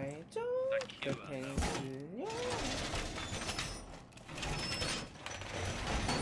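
A metal barricade clanks and rattles into place.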